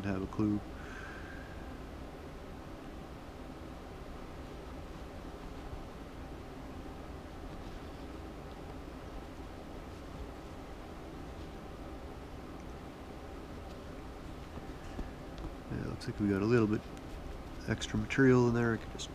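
Thread pulls softly through fabric as someone sews by hand.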